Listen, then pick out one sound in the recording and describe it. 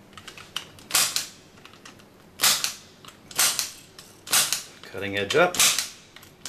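A hand tool punches wires into a panel with sharp, snapping clicks.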